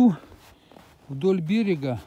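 A stick taps on ice.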